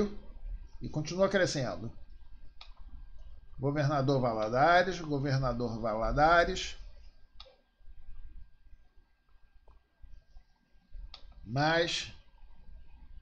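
An elderly man speaks calmly through a computer microphone, in short phrases with pauses.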